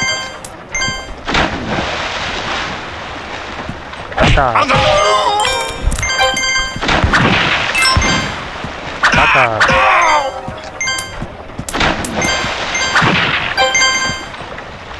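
Short bright chimes ring out again and again as coins are picked up.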